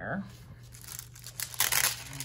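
A sticker peels away from its backing sheet with a crackle.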